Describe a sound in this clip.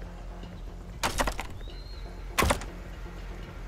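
A locked metal door rattles as its handle is tried.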